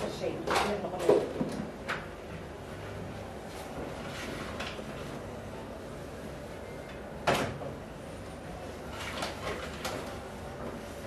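Dishes clink at a stove.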